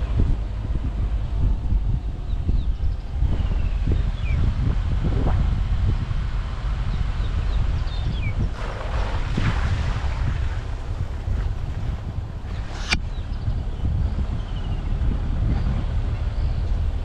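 An open vehicle's engine hums as it drives.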